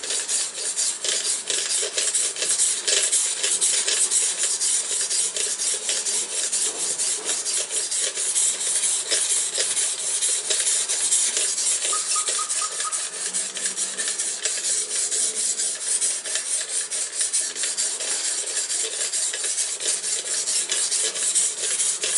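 A sharpening stone scrapes rhythmically back and forth along a knife blade.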